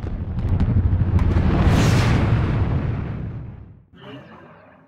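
A large explosion booms and roars, then fades.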